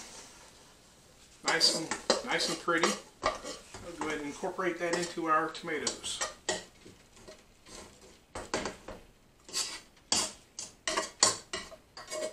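A metal spoon scrapes and taps against a pot.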